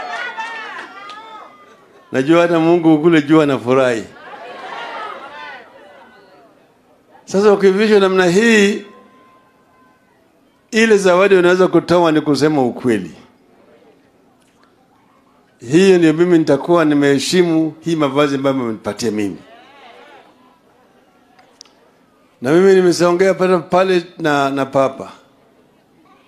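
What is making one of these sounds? An elderly man speaks loudly and forcefully into a microphone through loudspeakers, in bursts with pauses.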